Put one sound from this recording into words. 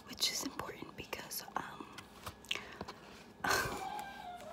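Paper pages rustle and flap as a book is handled close by.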